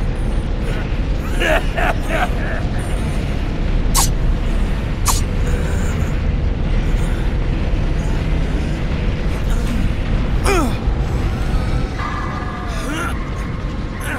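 A swirling magical vortex whooshes and crackles.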